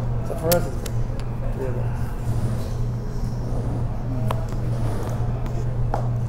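Poker chips click against each other.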